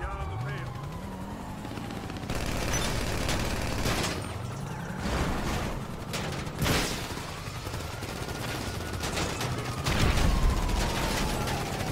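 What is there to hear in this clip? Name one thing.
A police car's siren wails, rising and falling.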